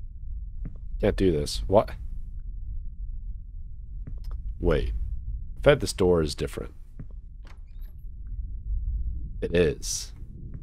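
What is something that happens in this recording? A young man speaks in short bursts close to a microphone.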